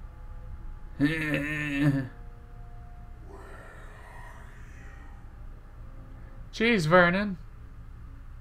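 A man speaks loudly into a close microphone in short outbursts.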